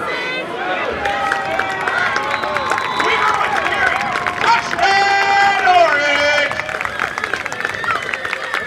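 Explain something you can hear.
A crowd cheers and shouts outdoors, swelling loudly.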